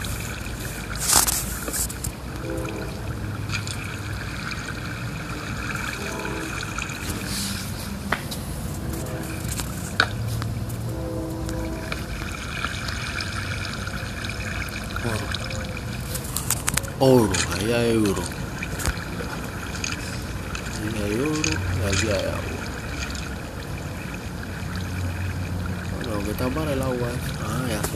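Water flows and trickles steadily.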